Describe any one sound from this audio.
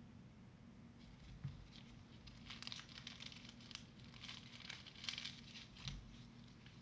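Gloved hands rustle faintly while handling a trading card.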